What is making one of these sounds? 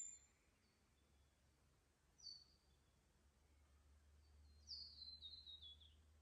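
Water trickles quietly among stones.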